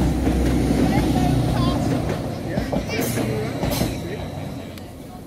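A passing train rumbles loudly, then fades.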